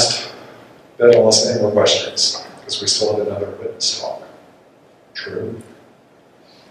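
A man speaks calmly into a microphone in a room with slight echo.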